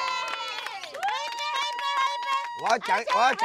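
Young women and men cheer and shout a toast.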